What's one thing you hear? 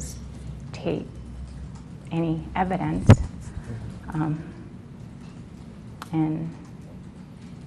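A woman speaks in short, hesitant phrases close to a microphone.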